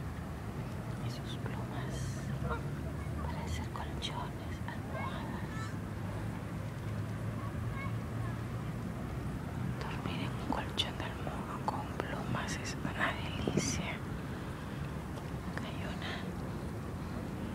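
Water birds call with short chirps nearby.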